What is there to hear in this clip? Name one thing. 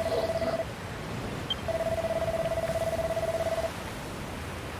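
Rapid electronic blips chatter in quick bursts.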